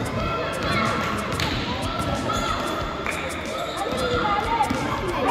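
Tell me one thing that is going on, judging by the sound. Young players call out and shout in a large echoing hall.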